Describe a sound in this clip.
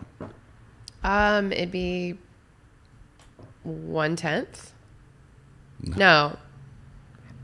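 A woman speaks into a microphone in short phrases, with pauses in between.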